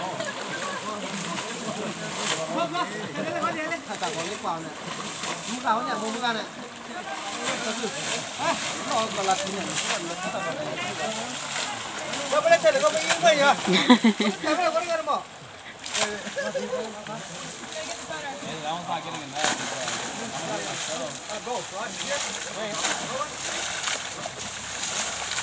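River water sloshes around people wading.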